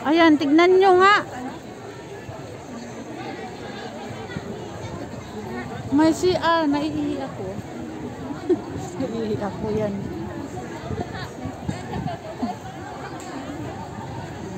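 A crowd of men and women chatters at a distance outdoors.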